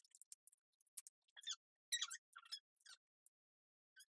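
Sheets of small beads crinkle and rattle in a person's hands.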